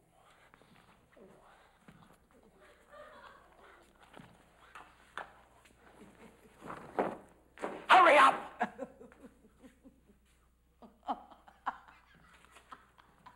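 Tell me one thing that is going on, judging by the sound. Footsteps thud on a wooden stage floor.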